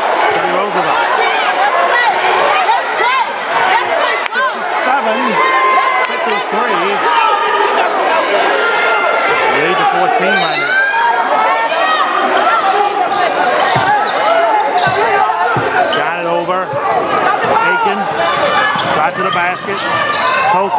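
A crowd of spectators cheers and shouts loudly in an echoing gym.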